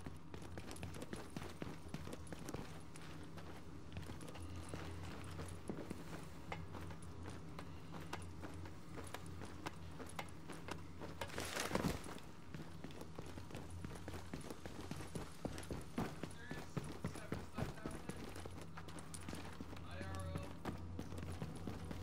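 Footsteps tread on a hard floor.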